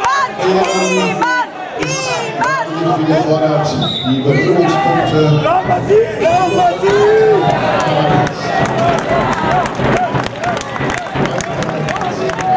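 A crowd of spectators shouts and calls out in an echoing hall.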